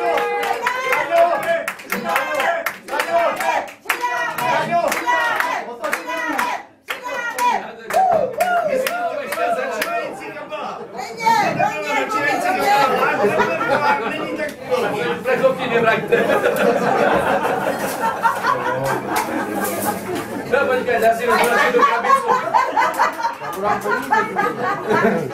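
A man sings loudly, close by.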